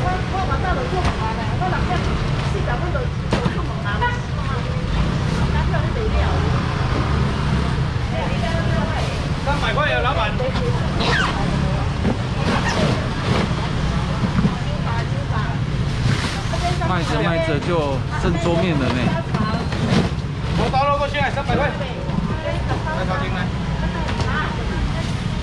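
A busy crowd murmurs and chatters nearby.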